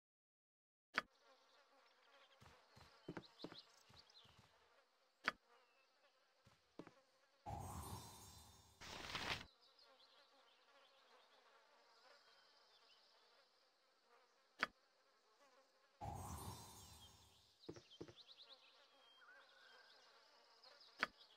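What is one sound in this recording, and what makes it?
Game interface clicks sound now and then.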